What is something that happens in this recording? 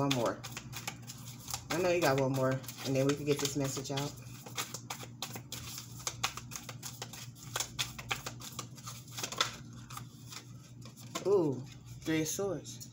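A deck of cards is shuffled with quick, papery flicks and taps.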